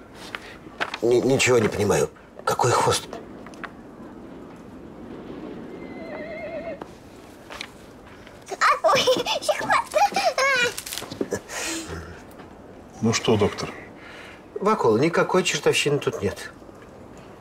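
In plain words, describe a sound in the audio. A middle-aged man speaks close by in a puzzled tone.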